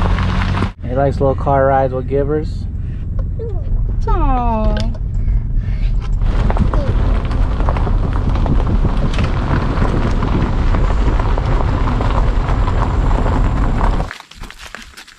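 A car rumbles steadily along a road.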